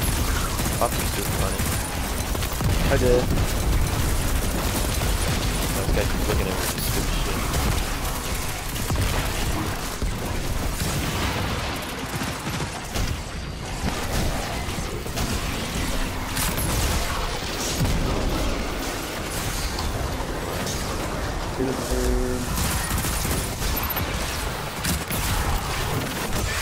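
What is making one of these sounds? Gunfire and energy blasts crackle rapidly.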